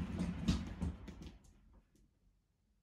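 A wooden cat exercise wheel rolls with a low rumble as a cat runs in it.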